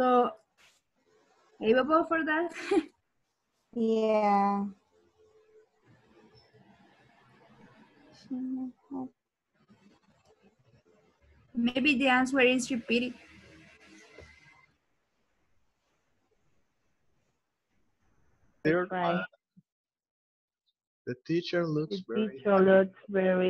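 A young woman speaks calmly over an online call, in short bursts with pauses.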